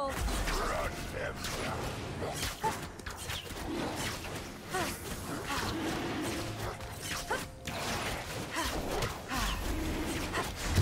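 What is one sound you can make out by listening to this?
Video game spells whoosh and crackle during a battle.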